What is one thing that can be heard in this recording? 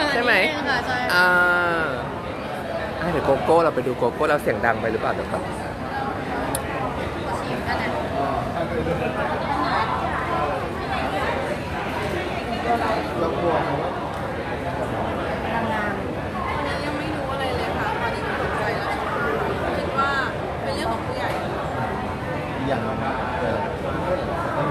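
A crowd chatters in a busy echoing hall.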